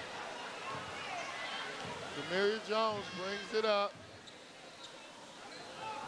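A basketball bounces on the court as a player dribbles.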